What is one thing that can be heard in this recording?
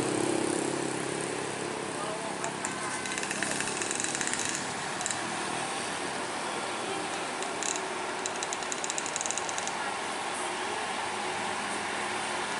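Rain hisses steadily on a wet road.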